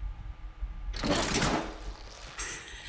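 A heavy metal door scrapes open.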